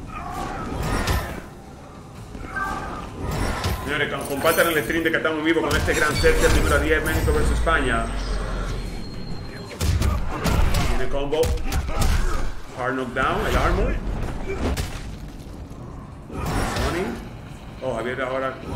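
Energy blasts crackle and whoosh in a video game fight.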